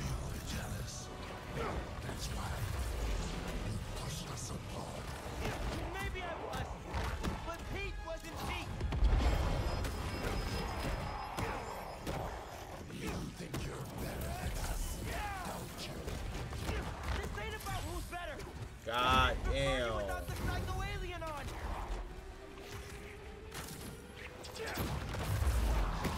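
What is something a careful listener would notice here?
Punches and blows thud in a fight, with rumbling impacts.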